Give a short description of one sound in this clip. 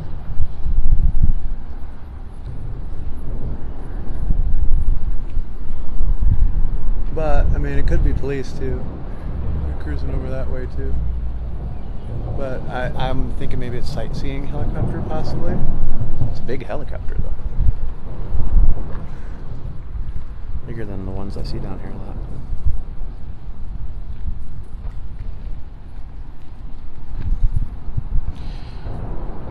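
Water laps gently against concrete pillars.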